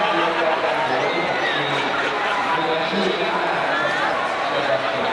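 A crowd of young people chatter close by outdoors.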